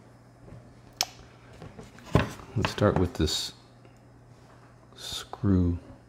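Hard plastic clicks and taps as it is handled.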